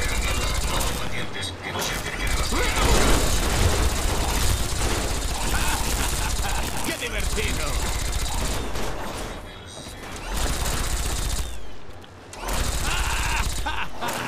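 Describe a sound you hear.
A rotary machine gun fires in rapid, rattling bursts.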